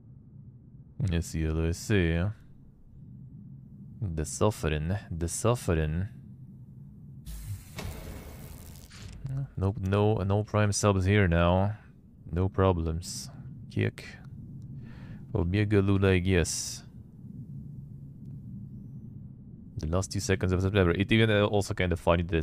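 A man talks calmly and casually into a close microphone, in bursts with pauses.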